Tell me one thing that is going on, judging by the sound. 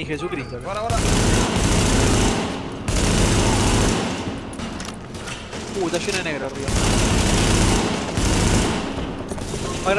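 Gunfire rattles in loud bursts, echoing in a large hall.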